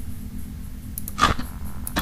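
Static hisses and crackles.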